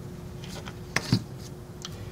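A small circuit board taps down onto paper.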